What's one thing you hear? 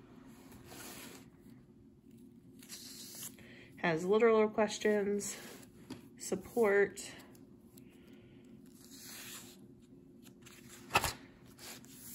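Paper pages of a spiral-bound book are turned.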